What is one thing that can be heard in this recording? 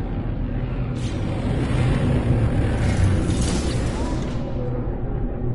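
A spaceship engine roars as it lands.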